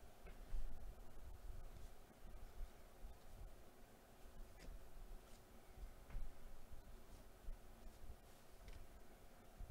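Trading cards flick and slide against each other as they are shuffled.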